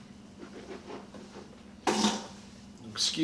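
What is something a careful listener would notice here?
A man spits into a cup.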